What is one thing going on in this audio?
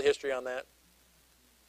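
A middle-aged man speaks briefly into a microphone, then falls silent.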